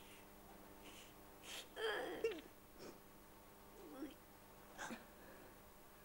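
A woman whimpers and sobs nearby.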